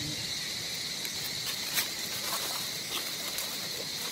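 Dry leaves rustle under a small monkey's feet as it walks.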